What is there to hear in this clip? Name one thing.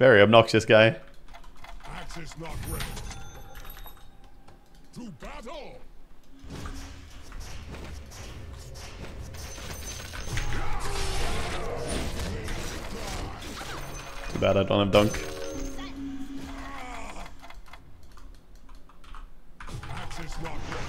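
Fantasy game spells whoosh and crackle.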